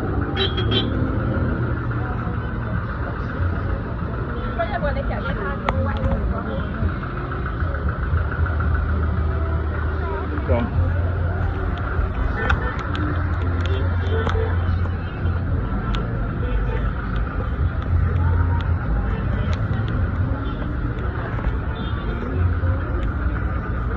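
Car engines idle nearby.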